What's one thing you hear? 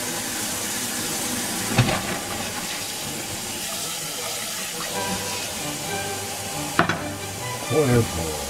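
Tap water pours steadily into a plastic colander.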